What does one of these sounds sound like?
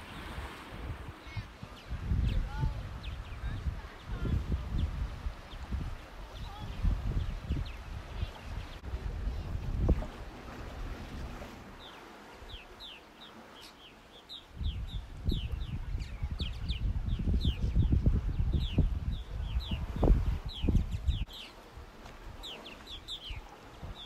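Birds chirp in short high calls overhead.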